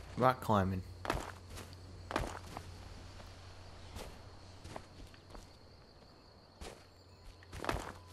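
Footsteps scrape and thud on rock.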